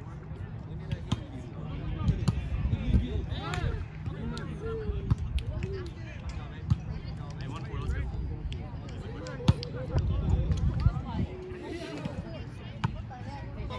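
Young men shout and call out to each other outdoors during a game.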